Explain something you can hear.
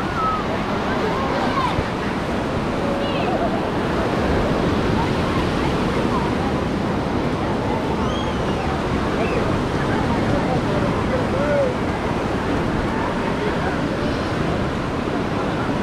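Children shriek and call out while playing in the water.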